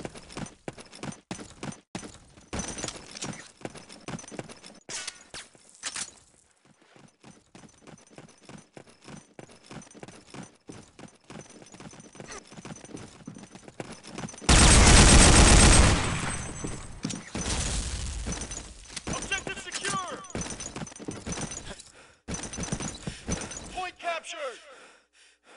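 Footsteps crunch steadily on hard ground.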